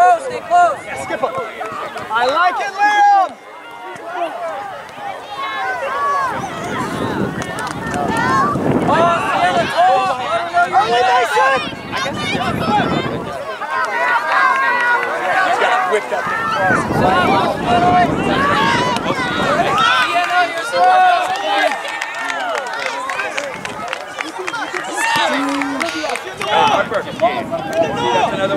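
A crowd of adult spectators shouts and cheers outdoors.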